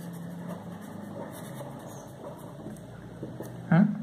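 A marker squeaks softly as it writes on paper.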